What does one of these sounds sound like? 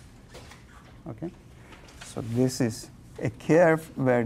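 A man lectures in a lively voice, close by in a room.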